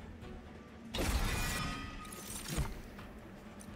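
A game chimes with a bright whooshing effect.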